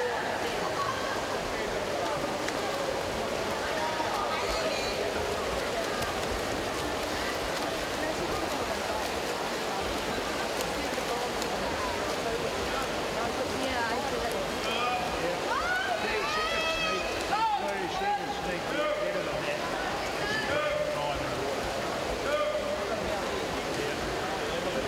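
Swimmers splash and churn through water.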